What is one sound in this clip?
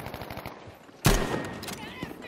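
A rifle fires a loud close shot.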